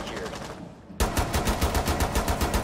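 A gun fires rapidly in quick bursts, loud and close.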